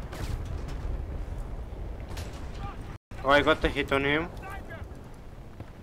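An explosion rumbles in the distance.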